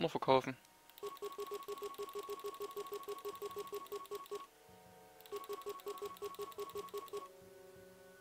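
Electronic interface tones beep in quick, even succession.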